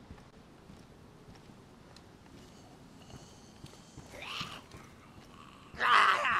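Footsteps thud softly on wooden boards and grass.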